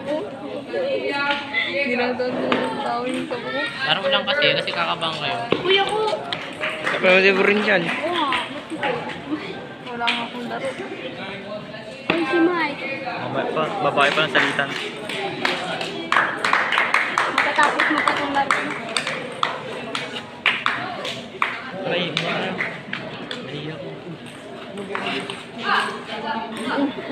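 Children chatter and shout excitedly nearby.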